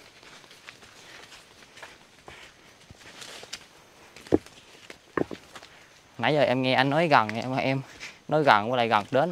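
Sandals scuff and tap on rock.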